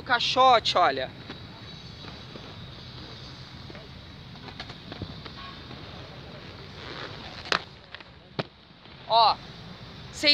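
Inline skate wheels roll over concrete.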